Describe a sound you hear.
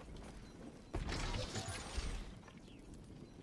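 A wooden chest bursts open with a rattle.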